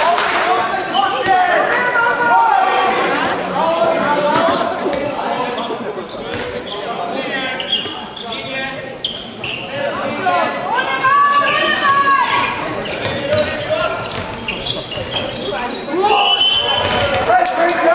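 Young men shout and call to each other in a large echoing hall.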